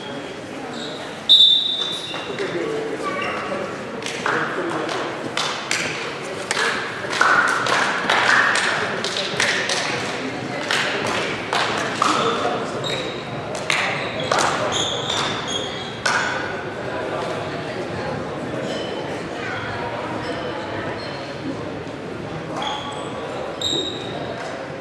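Young men call out to each other in an echoing hall.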